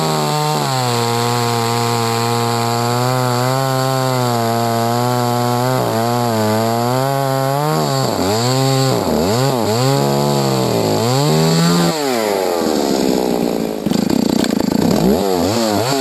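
A chainsaw engine roars close by, revving up and down as it cuts through wood.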